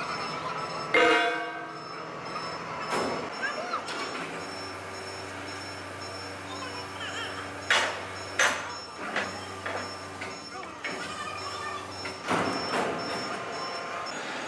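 Metal chains clank and rattle as they are hooked onto a steel plate.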